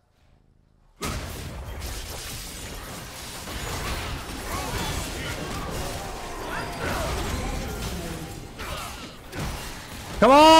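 Game spells whoosh and crackle during a fast fight.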